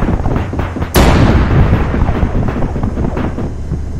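A large explosion booms close by and rumbles away.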